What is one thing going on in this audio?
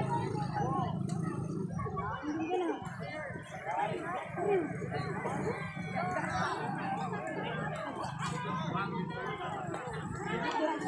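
A crowd of people chatters and shouts from a distance outdoors.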